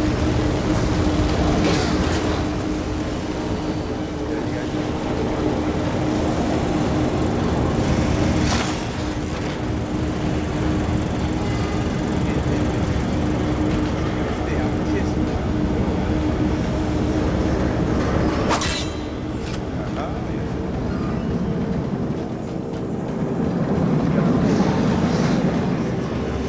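Footsteps patter quickly on metal floors.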